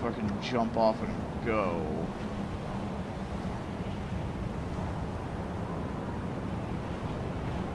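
Wind rushes past steadily.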